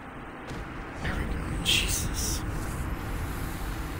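A deep whooshing boom rumbles.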